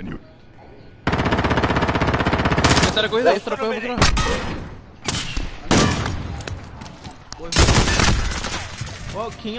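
Gunfire bursts loudly in quick volleys.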